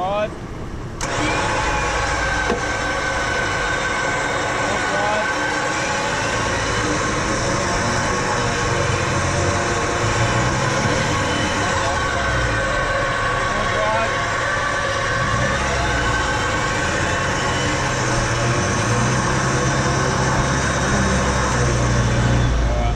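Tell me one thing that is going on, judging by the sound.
A car engine revs hard and strains.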